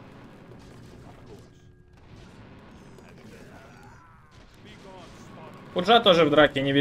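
Fantasy battle sound effects clash and crackle quietly.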